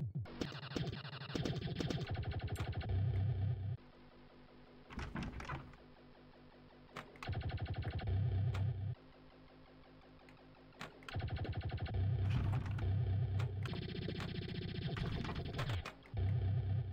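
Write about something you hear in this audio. A pinball strikes bumpers with sharp electronic chimes.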